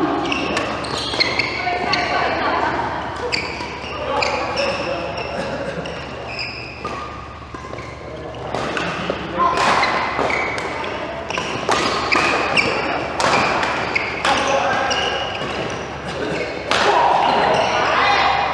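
Rackets hit a shuttlecock with sharp pops in a large echoing hall.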